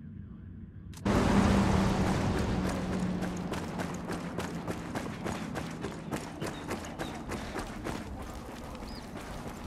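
Footsteps run quickly over dry dirt outdoors.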